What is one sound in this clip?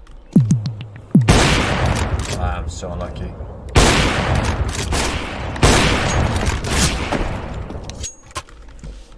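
Loud gunfire and game noise blast in bursts.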